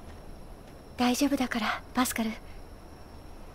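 A young woman speaks softly.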